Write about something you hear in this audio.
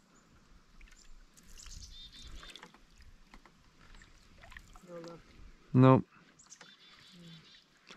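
Water laps gently against the side of a small boat.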